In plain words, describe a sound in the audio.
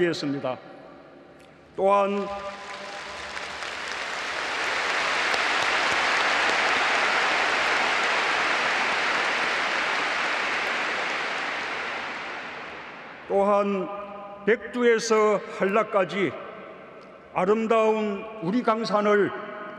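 A man speaks calmly and formally through a microphone in a large echoing hall.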